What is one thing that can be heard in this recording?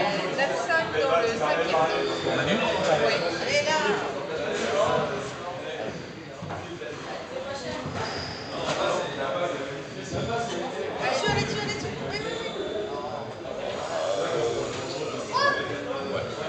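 A squash ball smacks off rackets and walls with sharp echoing thuds.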